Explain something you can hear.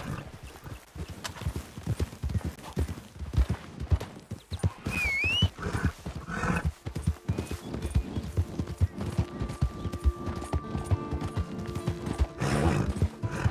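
Hooves thud steadily as a horse gallops.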